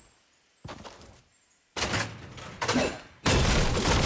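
A metal door swings open.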